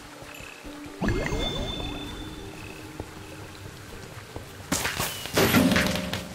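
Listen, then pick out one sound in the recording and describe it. A game chime rings for a new objective.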